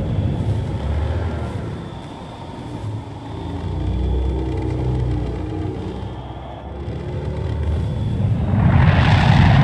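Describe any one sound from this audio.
A spacecraft's engines rumble low and steady as it flies.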